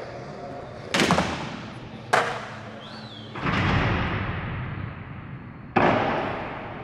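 A skateboard lands hard with a bang that echoes in a large hall.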